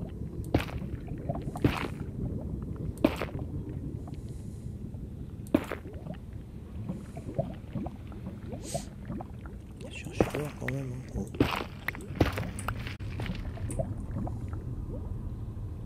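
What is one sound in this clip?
A man talks calmly into a microphone, close up.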